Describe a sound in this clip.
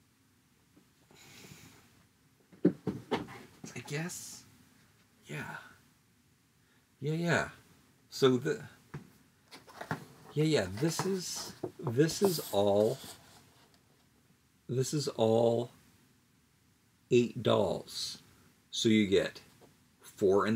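Cardboard boxes rustle in a man's hands.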